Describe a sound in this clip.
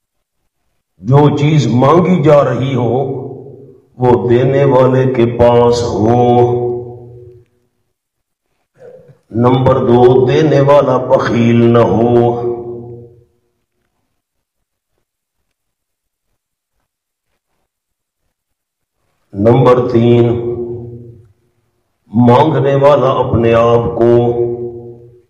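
A man speaks into a microphone in measured phrases, breaking off in long pauses.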